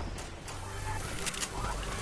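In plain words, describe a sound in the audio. A treasure chest creaks open with a shimmering chime.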